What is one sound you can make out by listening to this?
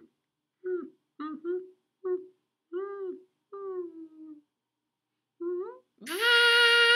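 A crow caws several times, close by.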